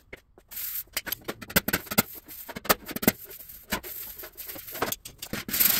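Compressed air hisses from a blow gun.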